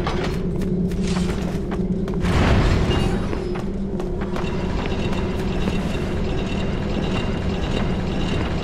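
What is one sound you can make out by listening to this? Flames crackle steadily.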